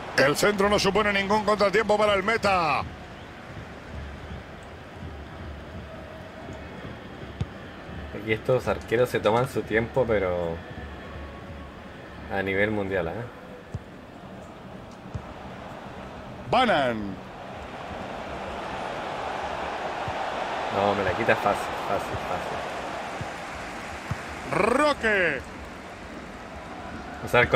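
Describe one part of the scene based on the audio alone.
A stadium crowd murmurs and swells into a roar.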